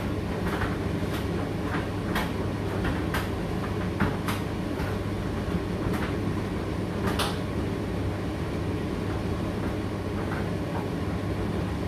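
A condenser tumble dryer hums as it runs.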